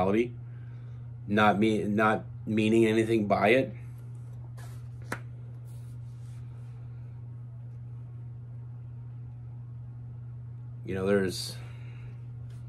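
A man speaks calmly and close to a microphone, in short bursts with long pauses.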